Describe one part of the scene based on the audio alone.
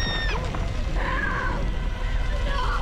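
A young woman sobs and wails loudly.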